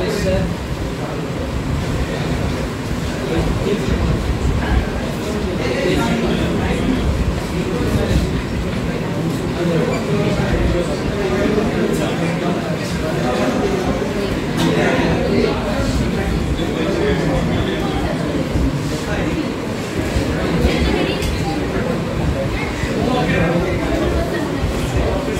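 A young man speaks calmly in a room with a slight echo.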